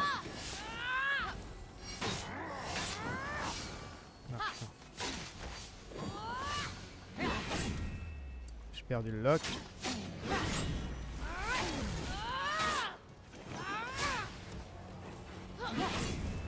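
Blades swish and strike in quick succession.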